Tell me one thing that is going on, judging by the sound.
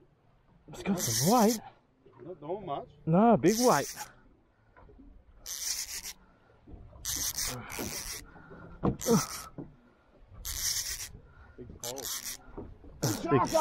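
A fishing reel's drag screams in short bursts as line pulls out.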